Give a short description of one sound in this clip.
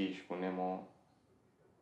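A young man speaks with an annoyed tone.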